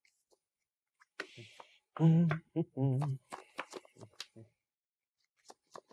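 Playing cards are shuffled with soft riffling taps.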